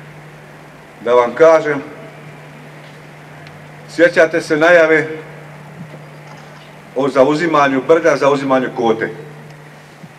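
A middle-aged man speaks forcefully into a microphone through a loudspeaker outdoors, pausing between phrases.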